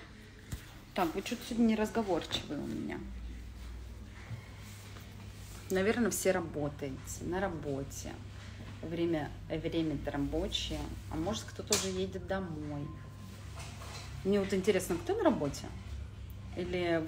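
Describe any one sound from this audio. A young woman talks close to a microphone, calmly and with animation.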